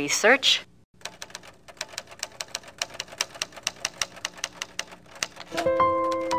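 Keys clatter in quick, steady typing.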